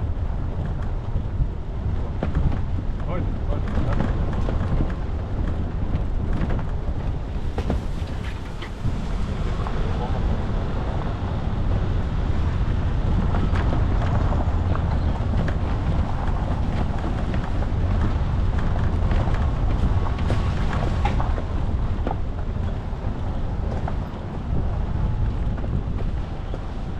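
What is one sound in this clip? A vehicle engine rumbles steadily at low speed.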